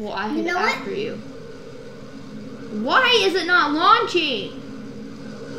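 A young boy talks excitedly close to a microphone.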